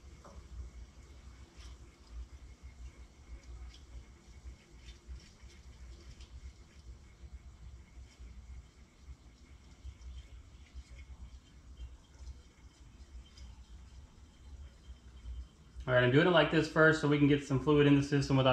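Liquid pours and gurgles from a bottle into a funnel.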